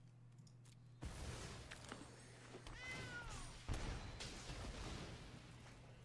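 Chiming digital card game sound effects play.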